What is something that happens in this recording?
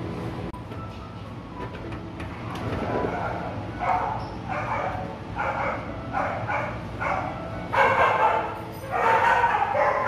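Dogs lap and crunch food from metal bowls.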